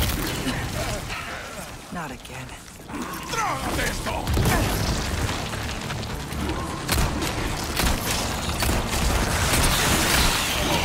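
Creatures growl and snarl nearby.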